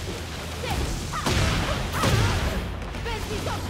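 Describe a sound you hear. Heavy blows land with sharp, booming smacks.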